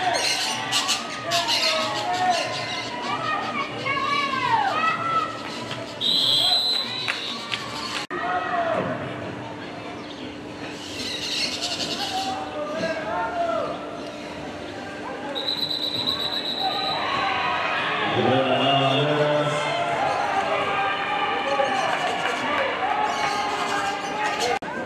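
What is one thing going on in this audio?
Young women shout and call out from across an open field.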